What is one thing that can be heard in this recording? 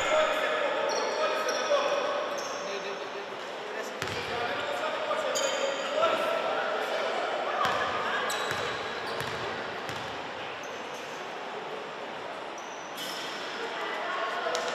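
Sneakers squeak sharply on a hardwood court in an echoing hall.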